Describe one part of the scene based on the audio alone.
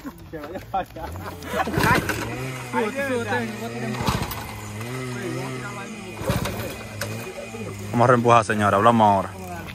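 A small motorcycle engine idles with a low putter.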